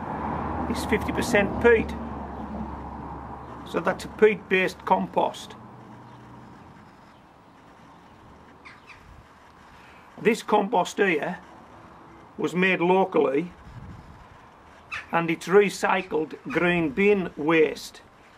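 A man speaks calmly and close by, explaining in short phrases with pauses.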